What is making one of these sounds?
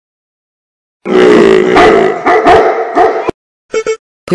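A large dog growls and snarls.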